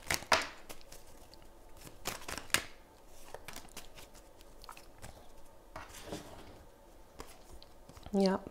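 Playing cards riffle and slap softly as they are shuffled by hand.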